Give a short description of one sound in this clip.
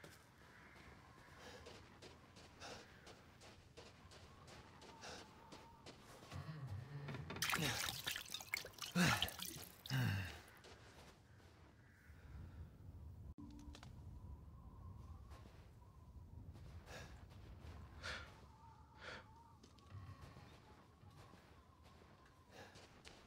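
Footsteps crunch slowly through snow.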